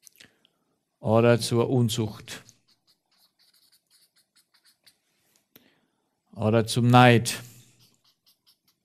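A man speaks calmly into a microphone in short bursts.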